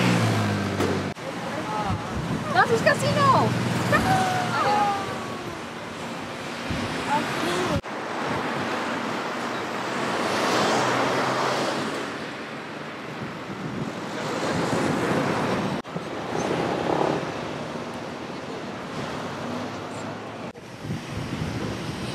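Traffic rolls past on a busy street.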